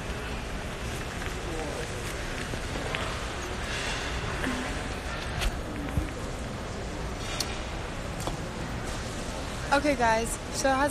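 A young girl talks casually and close to a phone microphone.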